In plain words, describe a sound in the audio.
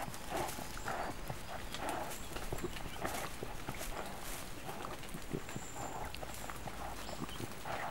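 Newborn animal cubs squeak and chirp again and again, close by.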